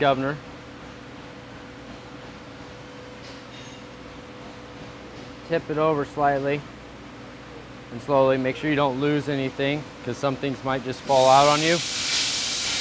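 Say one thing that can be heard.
A man speaks calmly, explaining nearby.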